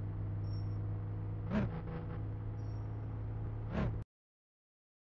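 A car engine idles with a low, steady hum, then cuts off abruptly.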